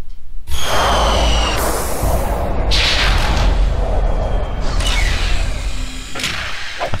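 A spacecraft engine roars loudly as the craft descends and lands.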